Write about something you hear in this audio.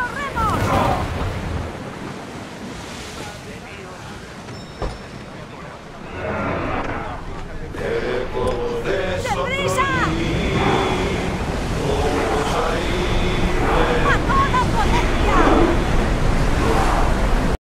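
Water rushes along the hull of a sailing ship.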